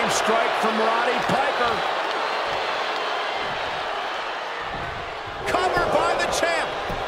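A large crowd murmurs and cheers in a big arena.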